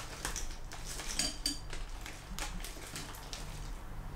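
Dry cereal rattles as it is poured into a bowl.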